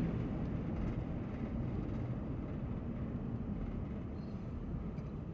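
A car's engine hums steadily from inside as it drives.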